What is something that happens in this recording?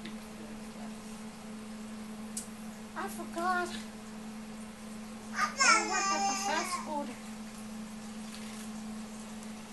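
Crisp lettuce leaves crinkle as they are handled.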